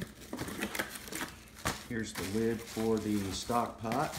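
Cardboard flaps scrape and rustle close by.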